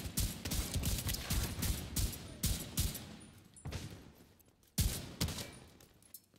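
Gunshots fire in rapid bursts and echo off buildings.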